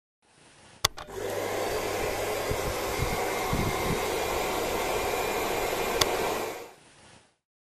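A hair dryer blows with a steady whir.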